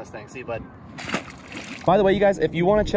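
A fish splashes into the water.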